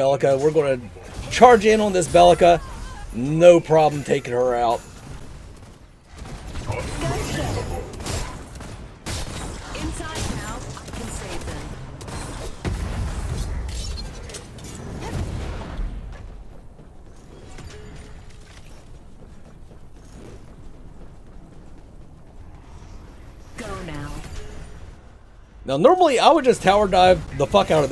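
Weapons clash and magic blasts crackle in a fight.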